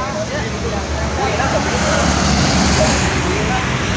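Several men talk at once.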